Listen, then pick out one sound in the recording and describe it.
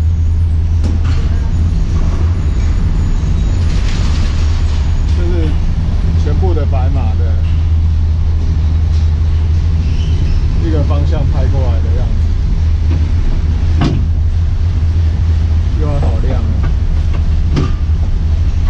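A cable car clanks sharply a few times.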